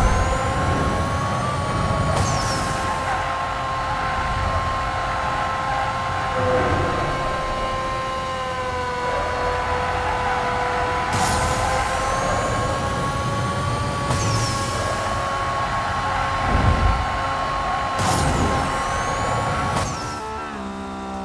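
A racing car engine roars at high revs, steady and loud.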